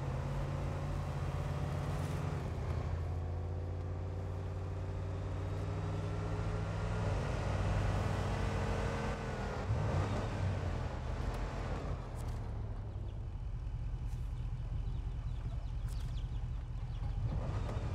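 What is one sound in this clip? Tyres squelch through mud.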